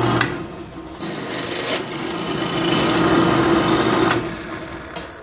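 A drill bit grinds into metal.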